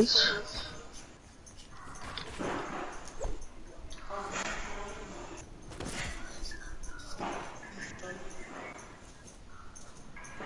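Wooden building pieces thud and snap into place in quick bursts.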